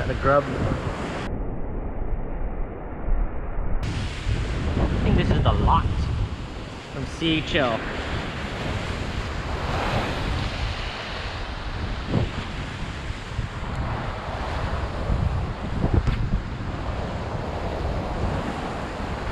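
Waves crash and wash against rocks.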